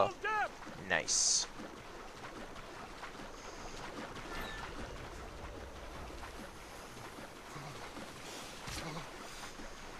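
Water splashes as a swimmer strokes through choppy waves.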